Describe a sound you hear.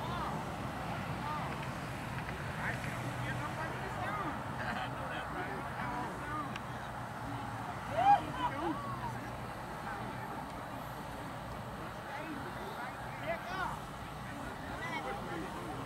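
Several people shout and call out at a distance outdoors.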